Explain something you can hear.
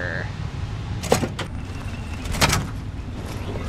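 A heavy metal door clanks open.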